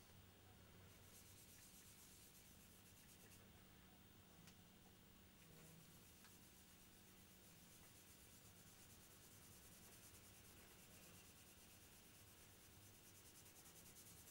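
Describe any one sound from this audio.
A cloth rubs steadily against a hard surface.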